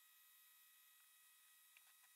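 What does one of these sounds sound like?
A cloth rubs over a metal surface.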